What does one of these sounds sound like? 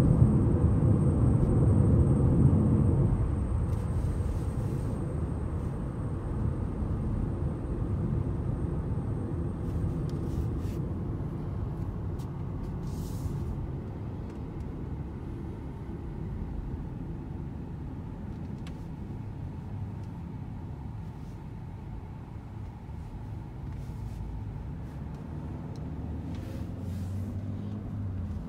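Tyres roll on pavement with a steady rumble.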